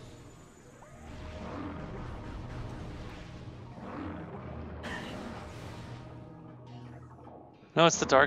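An energy gun fires rapid shots.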